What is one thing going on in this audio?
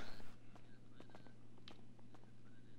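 Footsteps tap on a hard floor indoors.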